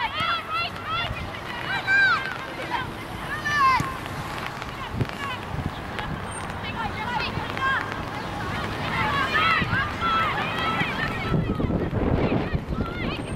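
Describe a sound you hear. Young women shout loudly across an open field.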